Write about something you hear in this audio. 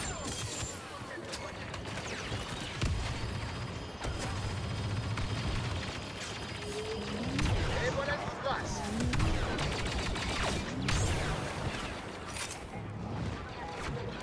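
Blaster guns fire in rapid bursts.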